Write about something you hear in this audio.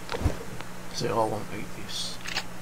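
A young man speaks briefly and casually into a microphone.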